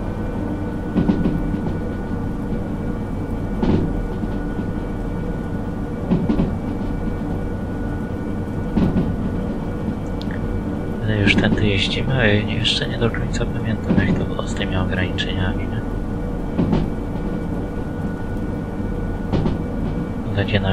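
Train wheels clack over rail joints at an even pace.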